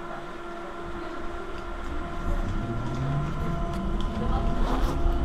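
Metal fittings rattle inside a moving tram.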